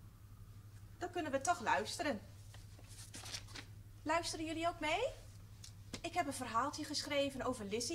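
A woman speaks with animation, close to a microphone.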